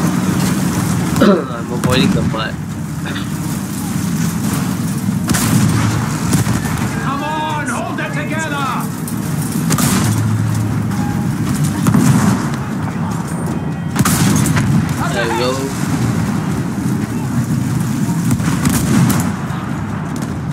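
A tank engine rumbles and its tracks clank steadily.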